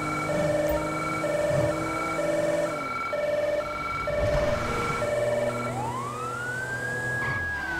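A police siren wails in a two-tone pattern, then switches to a rising wail.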